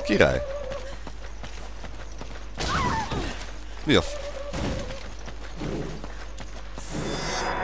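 Footsteps run over dirt ground.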